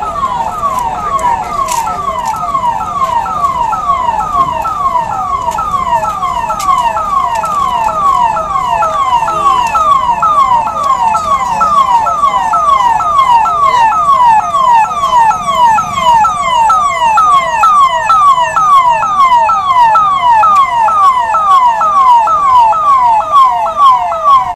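A police siren wails with a fast, repeating falling whoop.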